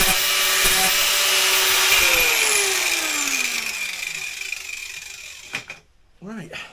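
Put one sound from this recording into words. An angle grinder whines loudly, then winds down.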